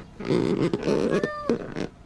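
A kitten meows.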